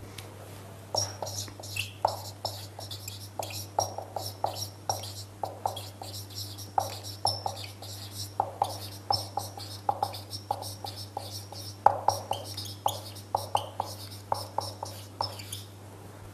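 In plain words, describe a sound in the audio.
A marker squeaks and taps in short strokes across a whiteboard.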